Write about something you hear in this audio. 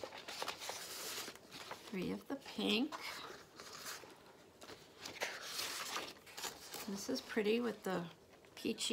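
Sheets of paper rustle and flap as they are handled.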